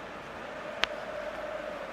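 A ball thumps into a goal net.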